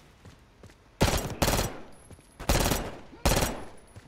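A rifle fires loud bursts of gunshots.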